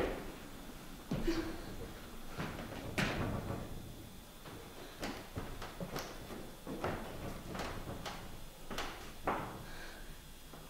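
Footsteps thud on a wooden stage.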